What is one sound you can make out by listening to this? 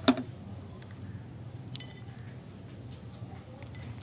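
Dry soil pours softly into a clay pot.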